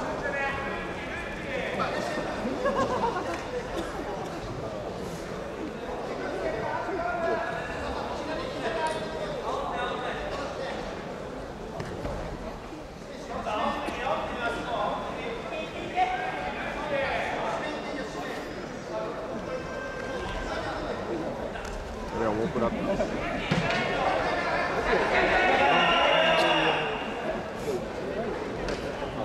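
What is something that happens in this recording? Several men shout and call out across a large echoing hall.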